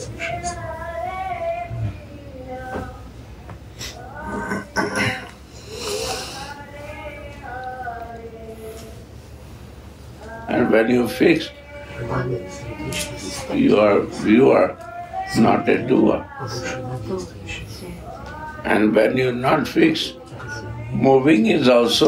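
An elderly man speaks slowly and calmly, close by.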